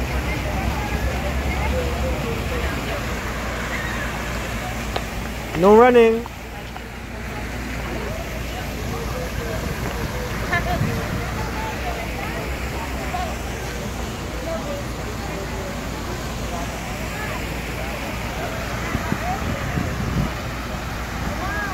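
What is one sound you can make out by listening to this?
Crowd chatter murmurs all around outdoors.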